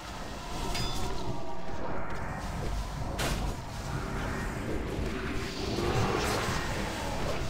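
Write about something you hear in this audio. Magic spells crackle and burst during a fantasy game battle.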